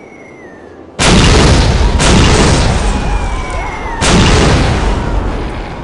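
Loud explosions boom and rumble one after another.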